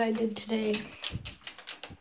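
A door knob rattles and clicks.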